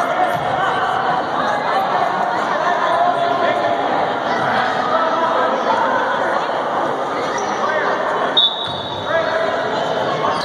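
A crowd of spectators chatters in an echoing gym.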